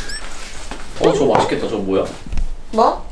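A young man speaks in a puzzled tone close by.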